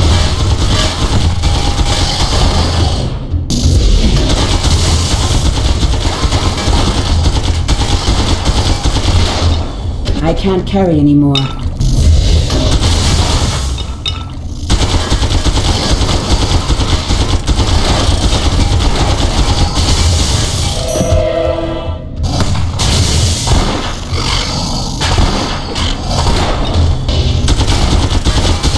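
Magic blasts crackle and burst during a fight.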